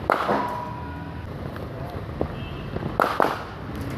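Footsteps thud softly on artificial turf.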